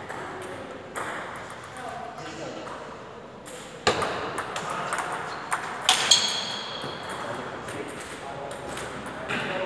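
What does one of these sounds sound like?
A table tennis ball clicks back and forth off paddles and the table in a slightly echoing room.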